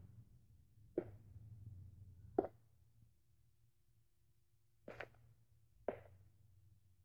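A sword strikes wooden figures with sharp knocks, several times.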